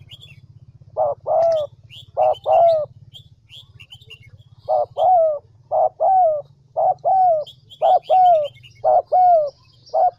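A dove coos close by in a repeated soft rhythm.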